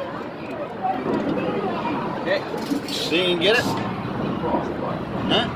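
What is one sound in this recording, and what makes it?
Claw machines in a busy arcade chime and play electronic jingles.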